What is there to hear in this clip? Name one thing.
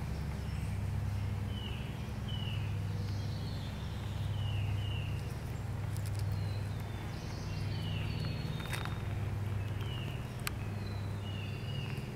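A chipmunk rustles through dry leaf litter while it forages.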